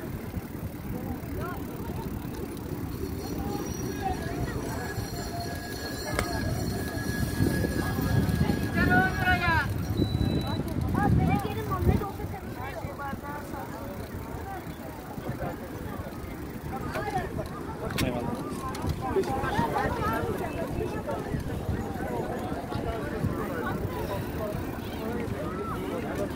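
Bicycle tyres roll on a paved path.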